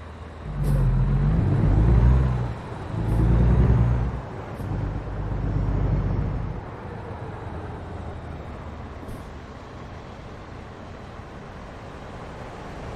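A truck engine rumbles and revs up, then settles to a low idle.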